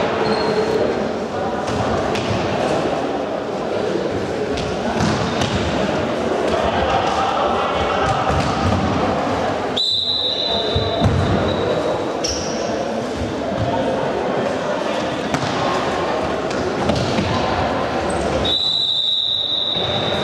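A ball thuds as players kick it in a large echoing hall.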